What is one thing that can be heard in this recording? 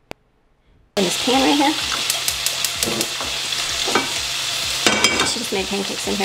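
Oil sizzles loudly in a hot pan.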